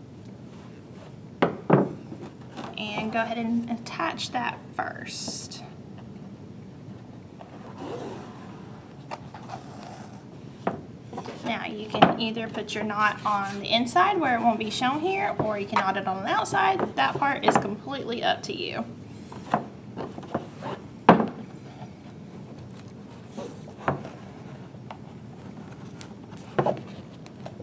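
Stiff card rustles and taps on a table as it is handled.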